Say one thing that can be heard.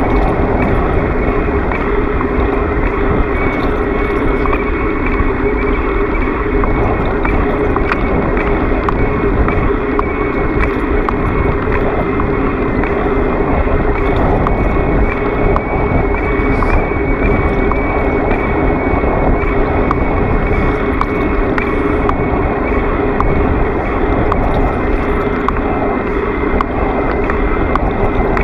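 Wind rushes loudly and steadily past.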